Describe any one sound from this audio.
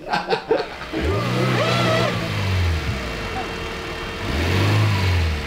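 A car engine revs hard.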